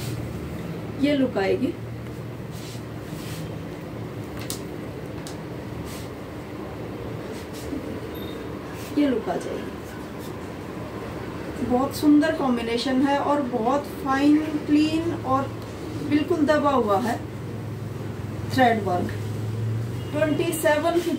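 A woman speaks calmly and close by, as if presenting.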